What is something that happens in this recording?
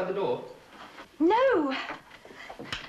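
A woman speaks brightly, her voice rising in a sing-song call.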